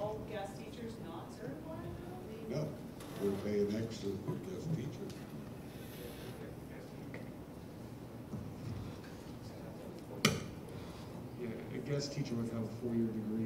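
Adults speak calmly through microphones in a large echoing hall.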